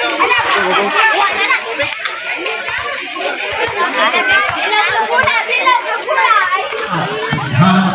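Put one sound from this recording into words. A crowd of people chatters and cheers outdoors.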